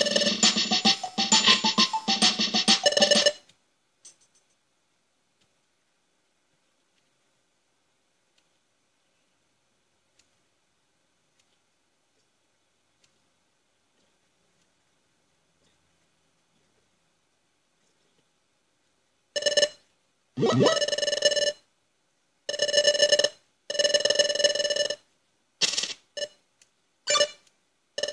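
A video game plays bright electronic tones in short bursts.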